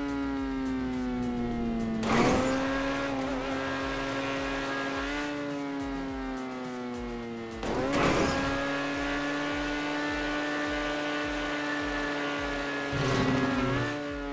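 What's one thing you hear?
A car engine roars steadily at high speed, its pitch dipping and rising.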